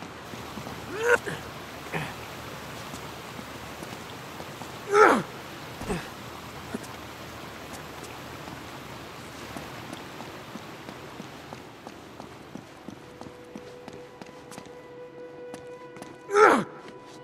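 A man grunts with effort as he climbs.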